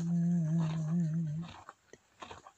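A foal nickers softly close by.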